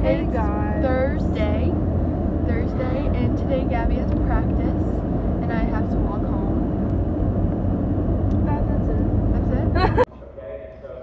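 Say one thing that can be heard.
A car's engine and road noise rumble steadily.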